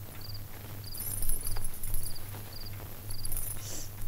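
A blanket rustles.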